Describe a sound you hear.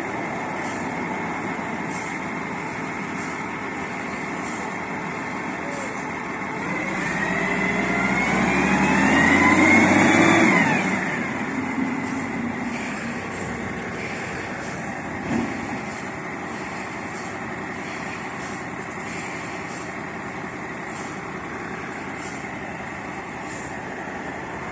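A forklift engine runs.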